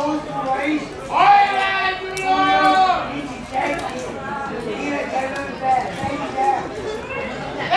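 Men shout across an open field.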